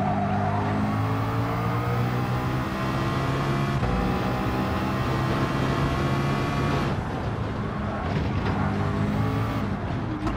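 A racing car engine roars at high revs, rising in pitch and dropping sharply with each gear shift.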